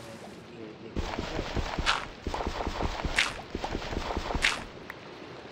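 Gravel crunches repeatedly as it is dug.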